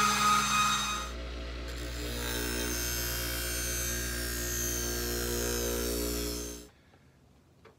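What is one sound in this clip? A strop wheel hums steadily as a blade is pressed against it.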